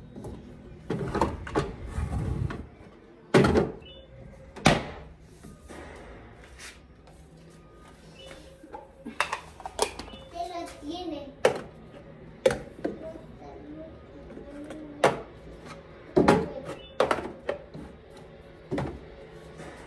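Plastic containers clatter and knock as they are set on a shelf.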